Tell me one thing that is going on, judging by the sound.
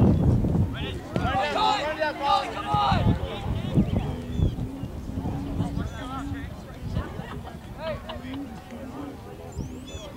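Young players shout to each other in the distance.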